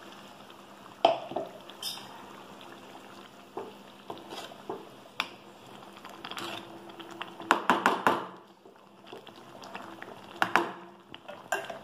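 A metal spoon scrapes and knocks against a metal pan.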